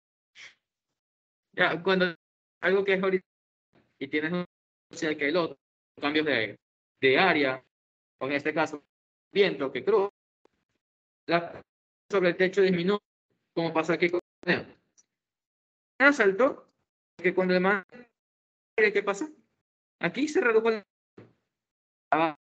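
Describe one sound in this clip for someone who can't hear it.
A young man talks calmly over a microphone, close by.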